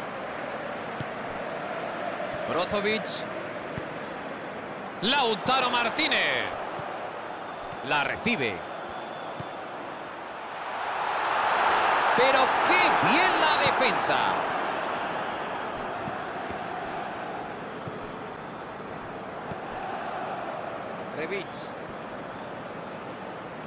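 A stadium crowd roars steadily, swelling loudly for a few seconds and then fading back.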